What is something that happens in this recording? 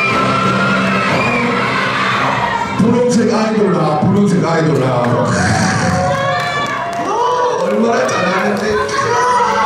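Children chatter and call out in an audience.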